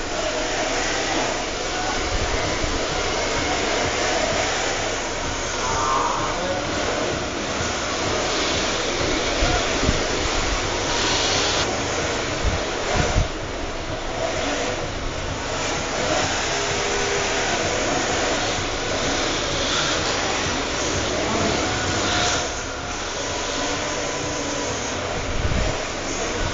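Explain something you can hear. Small electric motors whine as toy race cars speed around a track.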